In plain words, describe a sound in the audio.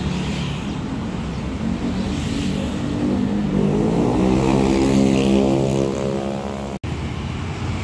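A bus engine drones loudly nearby.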